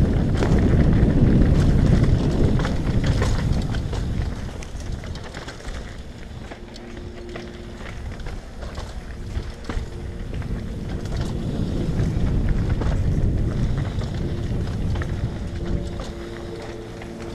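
A mountain bike's frame and chain rattle over bumps.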